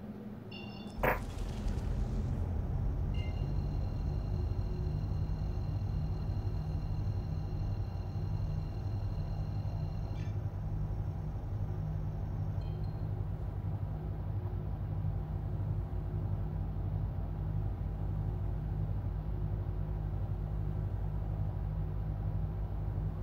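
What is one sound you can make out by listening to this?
A spaceship engine hums with a deep, steady rumble that starts with a sudden whoosh.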